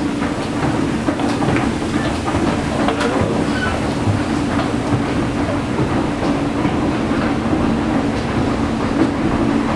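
An escalator hums and rattles steadily.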